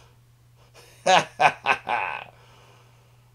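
A middle-aged man laughs heartily, heard through an online call.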